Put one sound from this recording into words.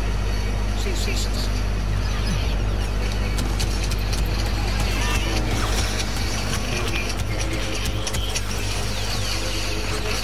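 Blaster shots zap and crackle.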